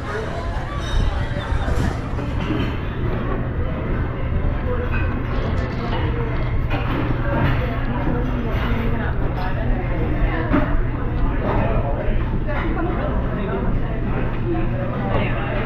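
Several men and women chatter in the background indoors.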